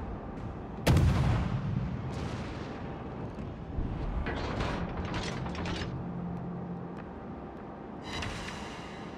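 Ship guns fire with loud booming blasts.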